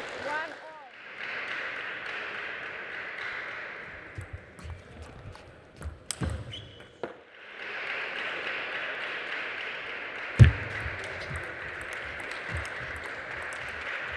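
Spectators applaud in a large hall.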